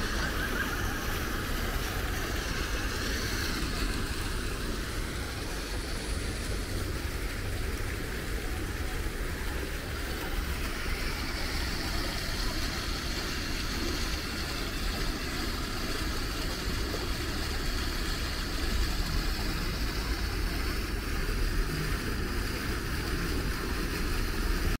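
A fountain splashes steadily into a pool outdoors.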